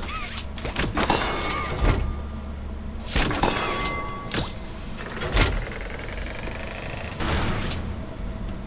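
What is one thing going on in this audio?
A mechanical grabber hand shoots out on a cable and snaps back with a whoosh.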